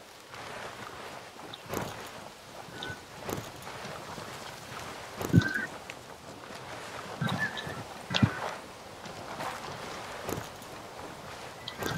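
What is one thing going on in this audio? Heavy footsteps crunch over forest ground at a steady pace.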